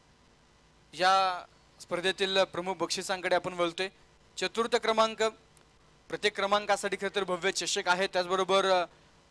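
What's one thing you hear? A man speaks loudly over a loudspeaker.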